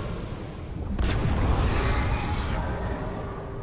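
A cloud of smoke bursts out with a loud whoosh.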